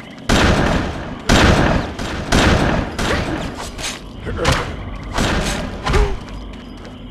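Heavy weapon blows and slashes strike in loud bursts.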